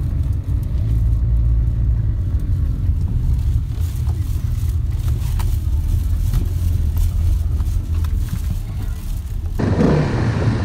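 A car engine hums low and steady from inside the cabin.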